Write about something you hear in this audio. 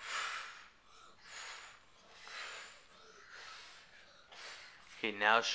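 A young boy blows air through pursed lips in puffs.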